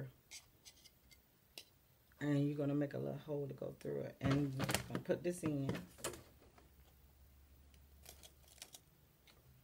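A cardboard box rustles and taps as hands handle it.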